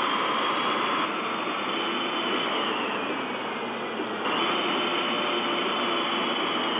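A bus engine hums steadily as the bus drives and slows down.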